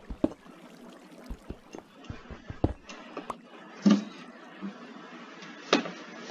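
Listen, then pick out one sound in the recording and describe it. A pickaxe taps and chips at stone in quick, uneven knocks.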